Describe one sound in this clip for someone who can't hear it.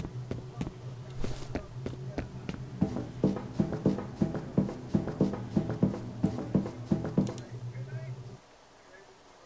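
A subway train rumbles and clatters along the tracks with a steady rhythm.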